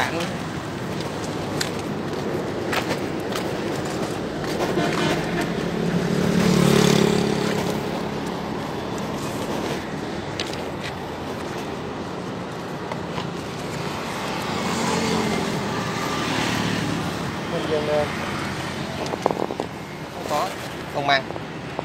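Traffic rumbles past on a nearby road outdoors.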